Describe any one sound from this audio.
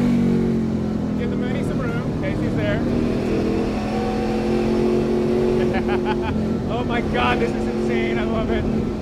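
A man talks over the engine noise through a helmet microphone.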